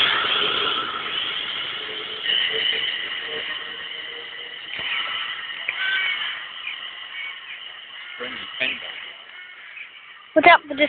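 A train pulls away along the track, fading into the distance.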